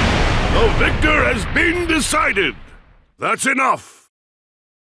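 A young man talks with animation into a microphone close by.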